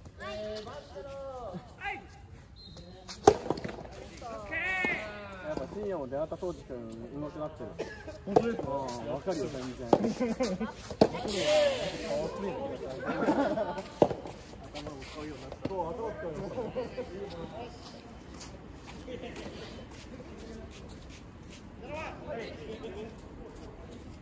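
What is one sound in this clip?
Young men talk and call out nearby, outdoors.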